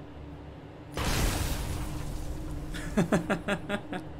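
Gunfire and explosions boom from a game.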